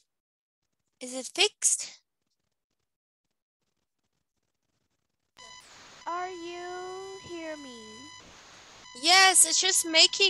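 A woman speaks animatedly over an online call.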